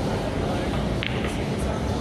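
A cue tip strikes a pool ball with a sharp click.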